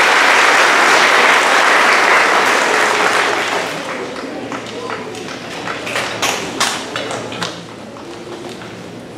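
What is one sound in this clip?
Chairs and music stands knock and scrape on a wooden stage.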